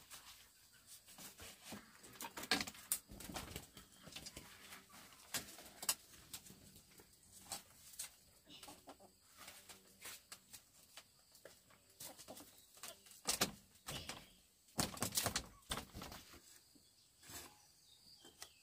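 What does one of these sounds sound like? A boy weaves bamboo strips into a wall, and they rustle and creak.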